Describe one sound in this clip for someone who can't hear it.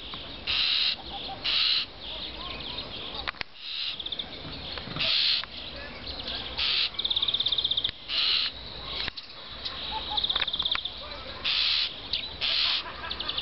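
A starling sings close by with harsh whistles, clicks and rattling chatter.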